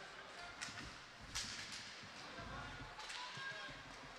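Hockey sticks click against a puck.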